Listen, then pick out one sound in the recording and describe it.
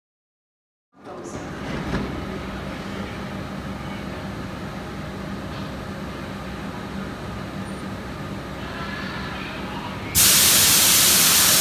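A train hums beside a platform in a large echoing station.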